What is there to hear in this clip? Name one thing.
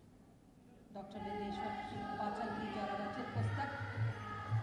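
A woman sings into a microphone, heard through loudspeakers.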